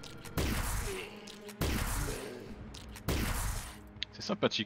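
Sharp blows and whooshing strikes land in a quick fight.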